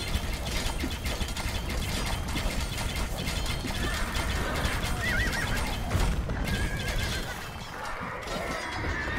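Swords clash and clang in a busy battle.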